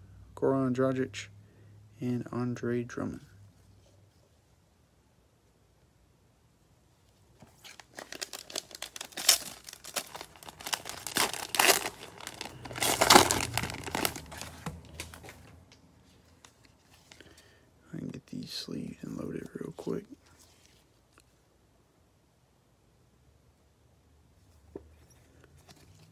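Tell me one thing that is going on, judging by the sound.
Plastic trading cards rustle and click as they are shuffled in the hands.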